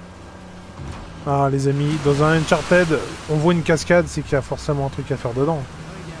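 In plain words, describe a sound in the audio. A waterfall rushes nearby.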